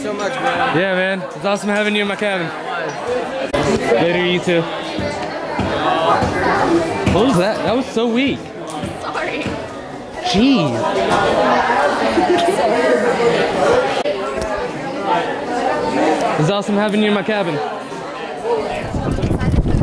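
Young people talk and laugh close by in a crowded room.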